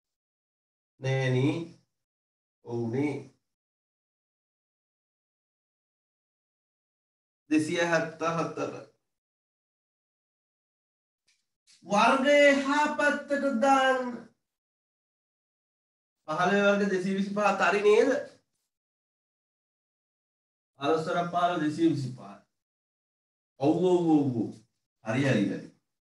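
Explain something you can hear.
A young man speaks calmly in short bursts with pauses, close by.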